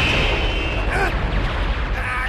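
A young man yells with strain.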